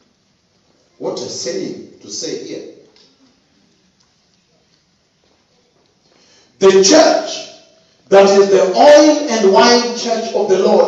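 A man speaks loudly and with fervour into a microphone, heard in an echoing room.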